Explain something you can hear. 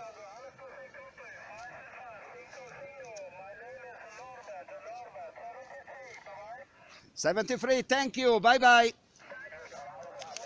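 A man's voice comes thin and crackly through a radio loudspeaker.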